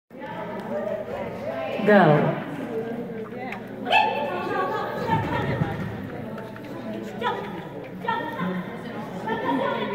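A woman calls out commands to a dog in an echoing hall.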